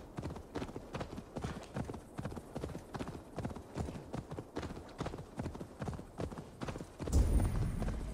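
Horse hooves clatter quickly on a dirt path.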